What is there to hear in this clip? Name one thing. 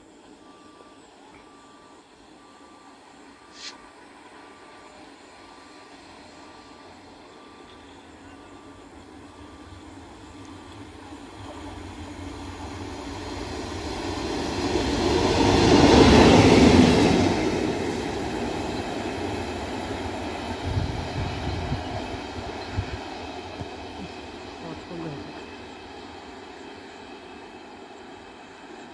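A train approaches from afar, roars past close by and slowly fades into the distance.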